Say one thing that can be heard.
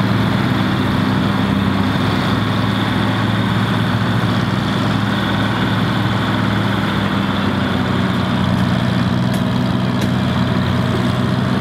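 A loader bucket scrapes through soil.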